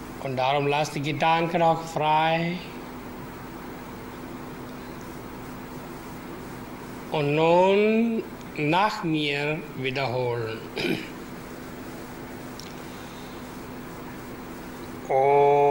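A man chants slowly in long, held notes, with pauses between phrases.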